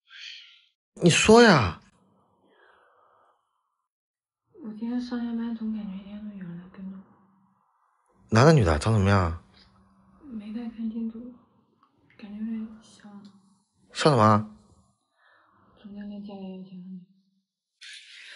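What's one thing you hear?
A young woman speaks close by, in a plaintive, complaining tone.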